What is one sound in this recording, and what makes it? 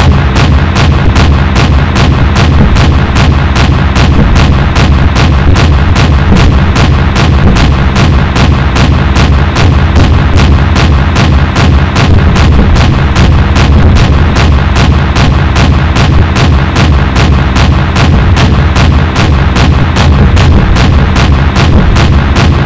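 Planes explode in the sky.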